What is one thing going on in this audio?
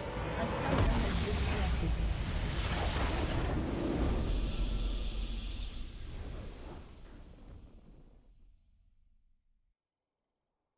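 A triumphant game fanfare swells and slowly fades away.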